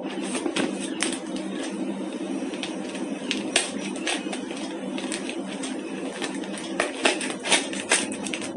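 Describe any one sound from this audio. Cardboard packaging rustles and crinkles as it is torn open by hand.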